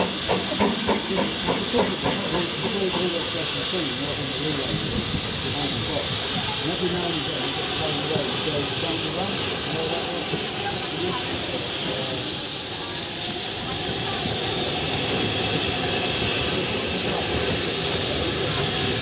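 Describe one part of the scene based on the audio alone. A steam locomotive hisses steadily close by.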